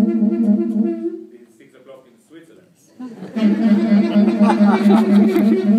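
A double bass plucks notes.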